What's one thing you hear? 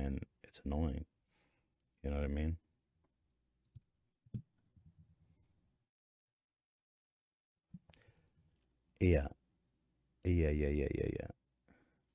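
A man speaks close to a microphone in short bursts, with pauses.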